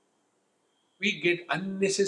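An elderly man speaks calmly and closely into a microphone.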